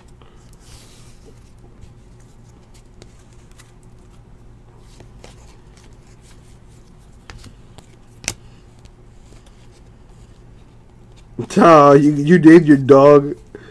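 Trading cards rustle and slide against each other.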